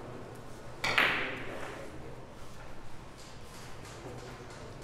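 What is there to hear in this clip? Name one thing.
Billiard balls clack together on the table.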